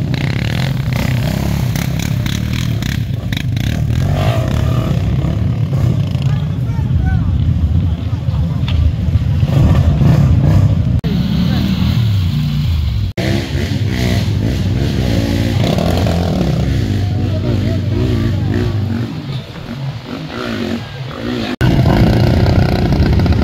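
Quad bike engines rev and roar through thick mud.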